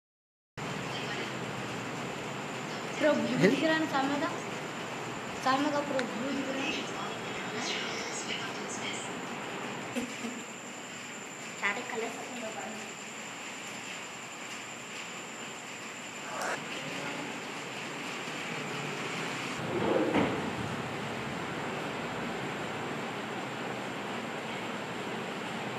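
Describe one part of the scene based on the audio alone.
Air coolers and a fan whir steadily.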